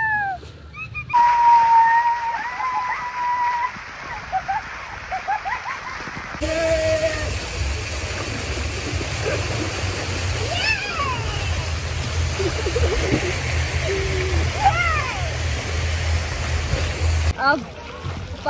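Water splashes.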